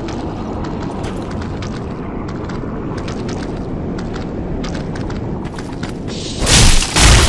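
Armoured footsteps crunch steadily over the ground.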